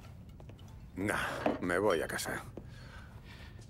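A young man answers casually.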